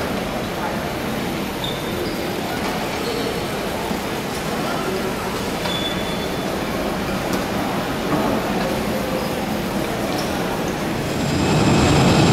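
Crowd chatter murmurs through a large echoing hall.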